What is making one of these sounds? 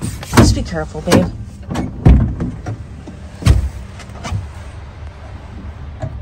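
Things knock and rustle close by.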